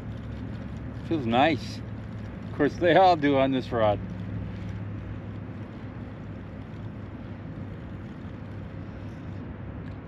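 A fishing reel clicks as a man reels in.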